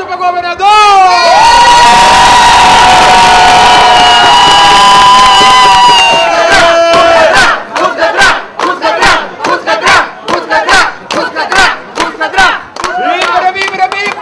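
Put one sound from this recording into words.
A crowd cheers and shouts with excitement.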